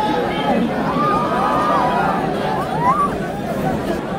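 Many people whistle in the crowd.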